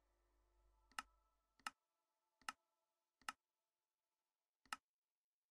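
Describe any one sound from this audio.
Short soft clicks tick at uneven intervals.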